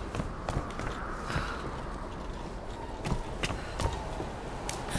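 Footsteps thud quickly on wooden planks.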